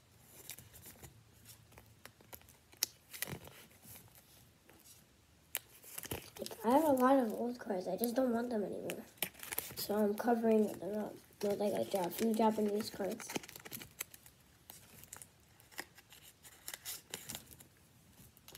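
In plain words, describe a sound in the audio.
Trading cards rustle and click as they are handled.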